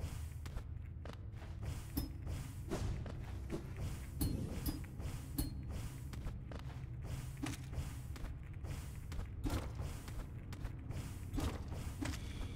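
Game music plays steadily with a low droning tone.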